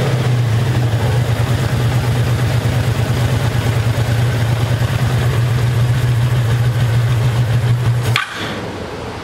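A motorcycle engine idles with a steady low rumble, then cuts out.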